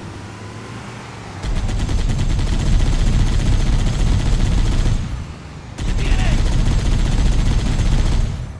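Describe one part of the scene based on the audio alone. A vehicle engine rumbles over rough ground.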